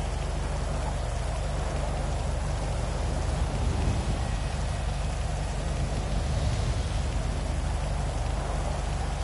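Rain falls steadily on wet pavement.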